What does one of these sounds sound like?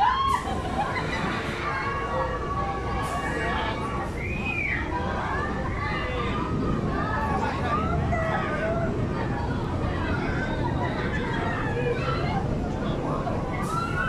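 A crowd of adults and children chatter and call out nearby outdoors.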